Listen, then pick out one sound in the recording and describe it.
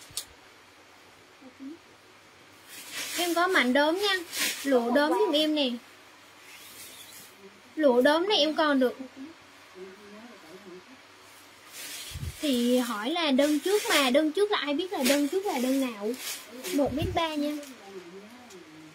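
Fabric rustles as it is handled and shaken.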